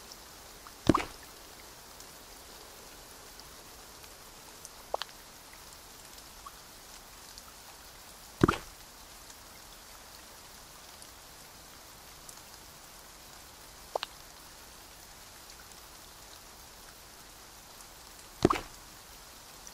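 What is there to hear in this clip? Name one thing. Short game interface sounds chime as objects are picked up and placed.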